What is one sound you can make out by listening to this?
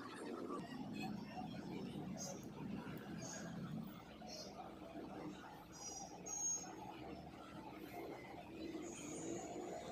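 A small blade scrapes and shaves a soft, waxy piece with faint scratching.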